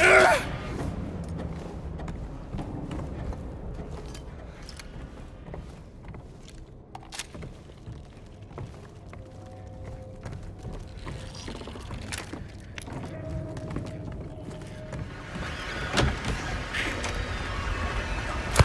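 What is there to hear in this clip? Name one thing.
Footsteps walk slowly across a creaking floor.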